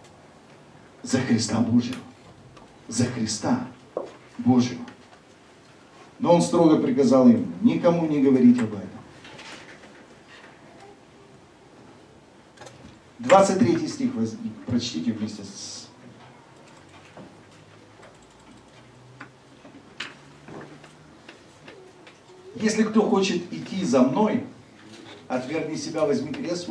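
A man speaks calmly through a microphone, with pauses between phrases.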